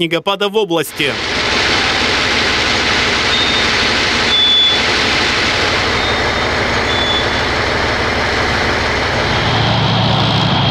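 A truck engine roars steadily.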